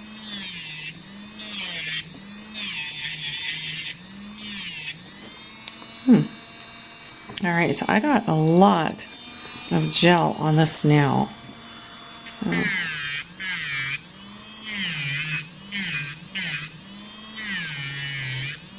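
An electric nail drill whirs, its pitch wavering up and down as it grinds a nail.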